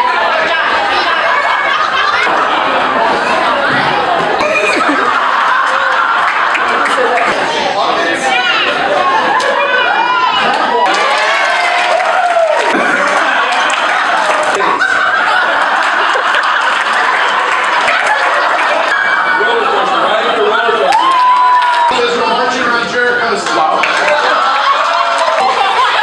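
A crowd of men and women laughs and cheers loudly in an echoing hall.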